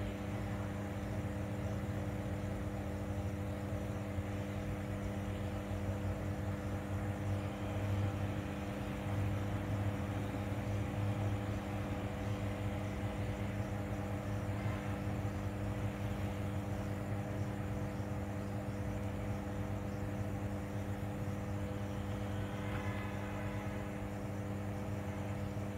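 An electrical transformer hums steadily and low nearby.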